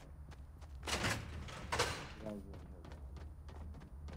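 A heavy metal door swings open.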